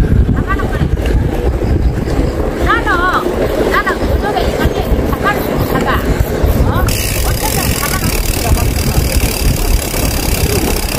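Wind rumbles over the microphone of a moving bicycle.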